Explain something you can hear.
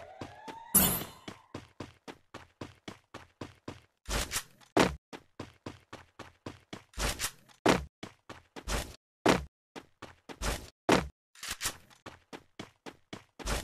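Footsteps run quickly and steadily over the ground.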